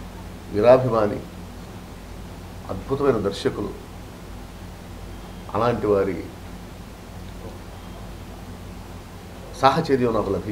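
A middle-aged man speaks in short bursts with pauses, close to a microphone.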